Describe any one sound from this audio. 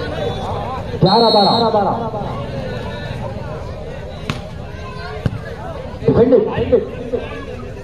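Young men shout to each other on the court.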